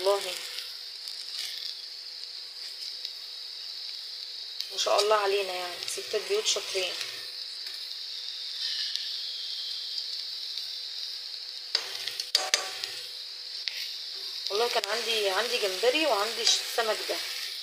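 Metal tongs click against a pan.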